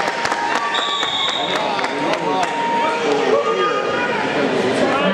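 A crowd of men and women talks and calls out in a large echoing hall.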